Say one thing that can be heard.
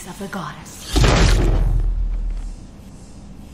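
A deep rumbling boom swells and fades.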